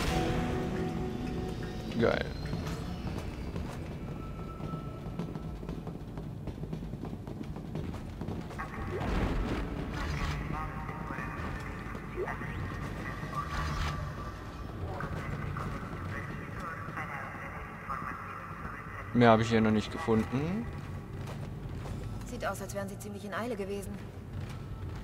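Heavy boots clank on a metal floor.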